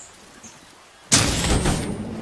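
A switch on a control panel clicks as it is pressed.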